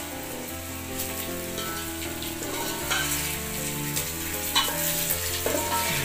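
A metal spoon scrapes and clinks inside a pot.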